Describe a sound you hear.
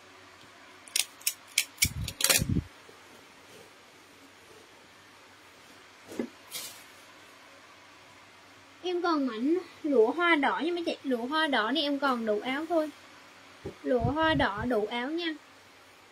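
Fabric rustles as cloth is handled.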